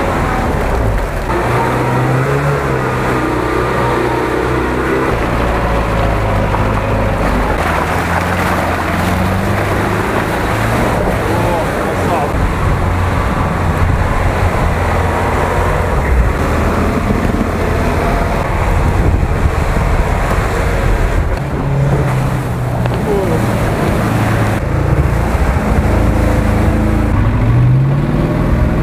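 Tyres slosh and splash through mud and water.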